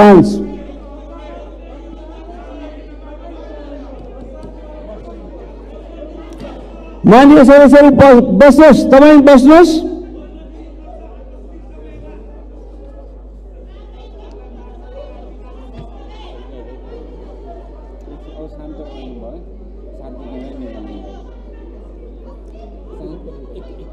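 A crowd of men and women murmurs and chatters in a large hall.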